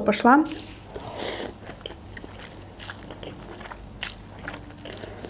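A young woman slurps noodles.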